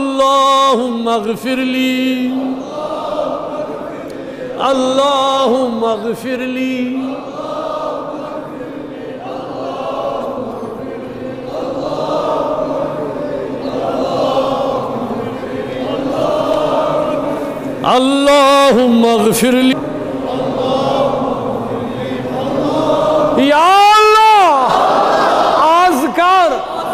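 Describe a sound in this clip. A man chants a prayer loudly into a microphone in a large echoing hall.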